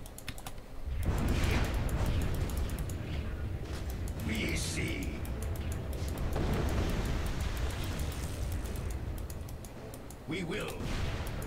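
Magic spells whoosh and crackle in a noisy fight.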